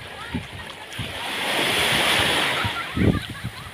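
Small waves wash up onto the sand.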